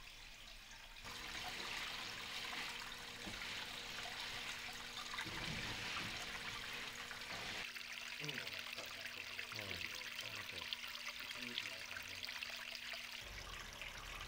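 Water trickles and splashes over rocks.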